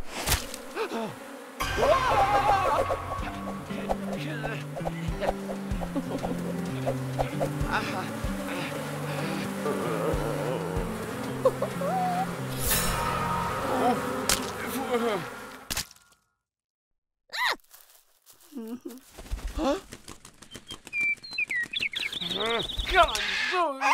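A young boy's cartoon voice groans and cries out.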